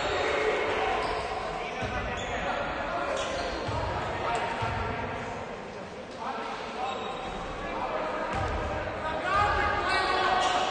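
Young men call out in a large echoing gym.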